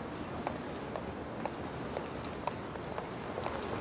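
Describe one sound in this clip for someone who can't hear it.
Suitcase wheels rumble and rattle over pavement.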